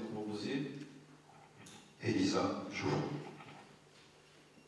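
A man speaks calmly into a microphone in a large, slightly echoing room.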